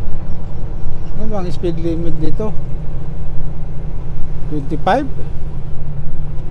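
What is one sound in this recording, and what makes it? A diesel semi truck engine drones while driving, heard from inside the cab.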